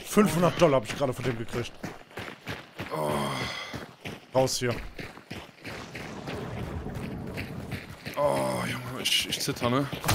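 Footsteps run quickly over a gravel road.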